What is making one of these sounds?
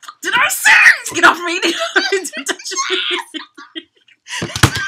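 Two young women laugh loudly and excitedly close by.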